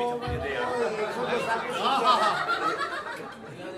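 A woman laughs loudly nearby.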